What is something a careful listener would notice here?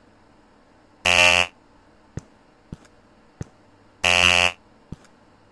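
A harsh electronic buzzer sounds twice, briefly.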